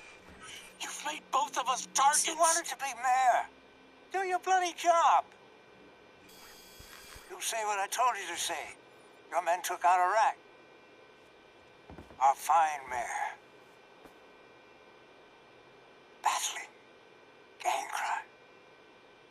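A man speaks sternly and forcefully, close by.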